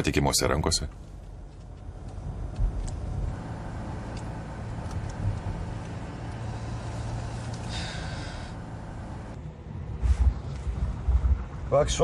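A car engine hums low and steady inside a car.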